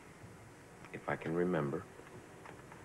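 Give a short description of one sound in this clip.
A man speaks slowly nearby.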